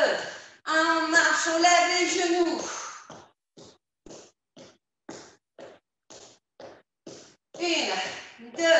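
A woman speaks energetically into a microphone.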